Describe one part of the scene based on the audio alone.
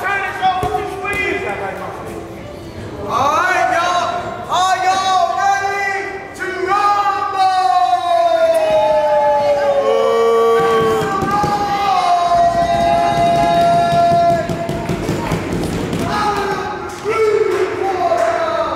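A man sings loudly and with feeling, his voice ringing out in a large echoing hall.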